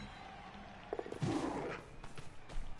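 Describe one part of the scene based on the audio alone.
Players collide with a thud.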